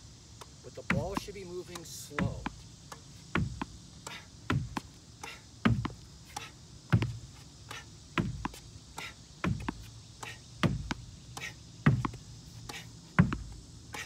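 A tennis racket hits a ball with sharp pops at a steady pace.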